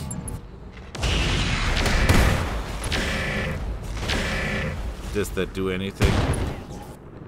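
A laser weapon fires with a loud crackling blast.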